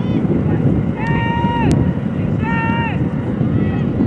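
A referee's whistle blows twice in short, sharp blasts.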